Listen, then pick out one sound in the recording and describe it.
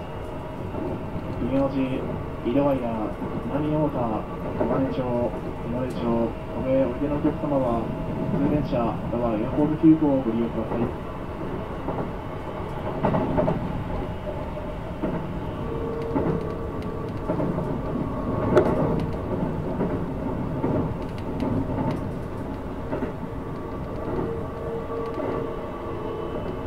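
A train rumbles along steadily on its tracks.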